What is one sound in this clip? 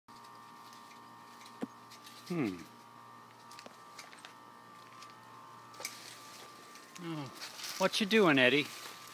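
Dry leaves rustle and crackle as a man pushes through plants.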